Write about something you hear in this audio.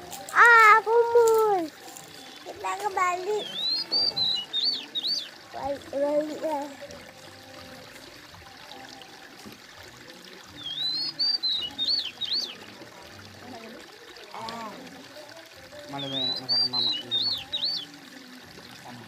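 A young child babbles and squeals loudly right next to the microphone.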